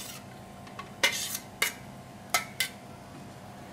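Metal utensils clink against containers.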